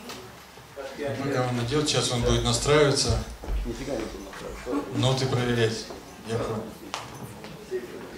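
A middle-aged man speaks into a microphone over loudspeakers in an echoing hall.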